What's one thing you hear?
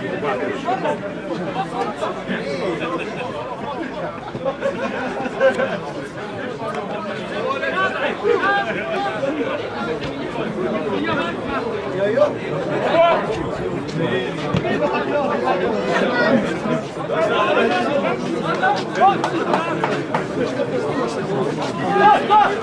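Players shout to each other across the pitch.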